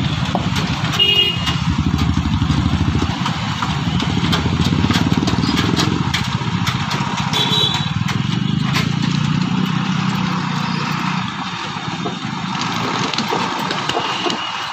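Motorcycle engines idle and rev close by.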